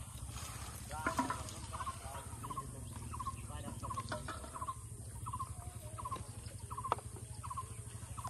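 Wooden fishing rods knock and rattle as they are handled.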